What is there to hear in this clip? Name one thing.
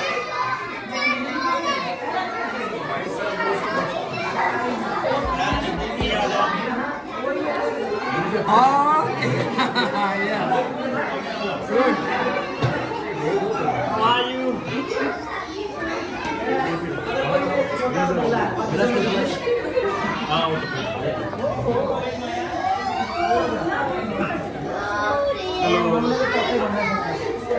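A crowd of men and women chatter all around indoors.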